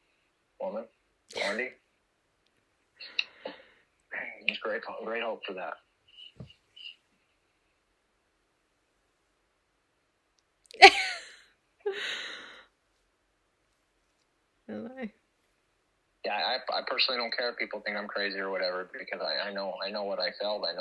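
A woman talks cheerfully over an online call.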